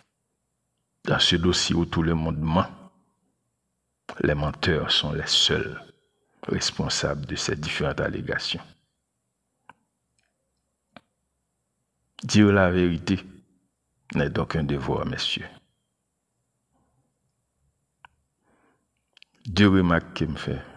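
A man speaks in short bursts close to a microphone, with pauses in between.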